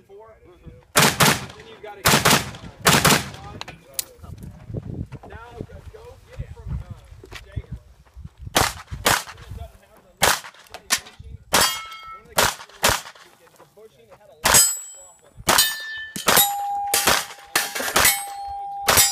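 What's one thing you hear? A handgun fires rapid shots outdoors.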